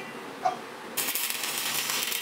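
An electric welder crackles and sizzles steadily.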